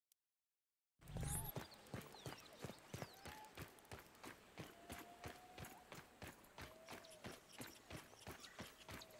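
Footsteps patter quickly over dry ground.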